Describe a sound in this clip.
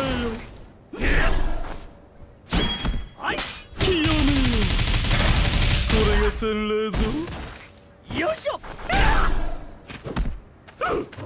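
Swords clash and slash with sharp impacts.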